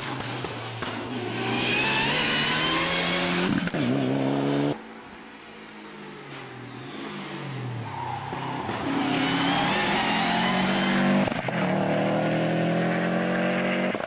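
A rally car engine roars and revs hard as cars speed past close by.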